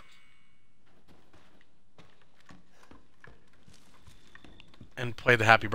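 Footsteps thud on a creaking wooden floor.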